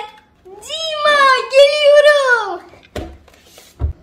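A young girl talks cheerfully and with animation, close by.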